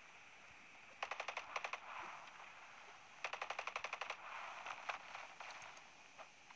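A rifle fires in short rapid bursts.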